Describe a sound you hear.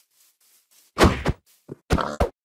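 Heavy thumps strike a pig.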